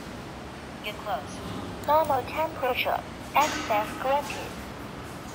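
A temperature scanner plays a short electronic chime.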